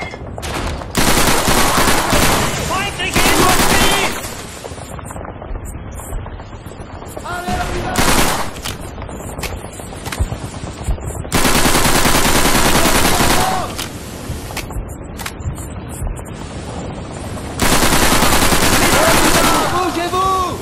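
A submachine gun fires loud rapid bursts close by.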